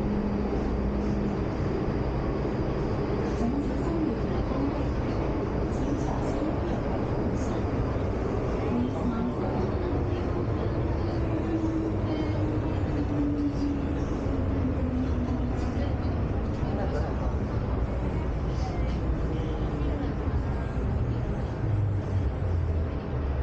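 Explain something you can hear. A subway train rumbles and rattles steadily along the tracks.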